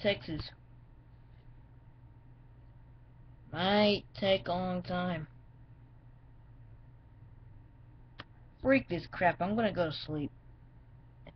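A young boy speaks in short bursts close to the microphone.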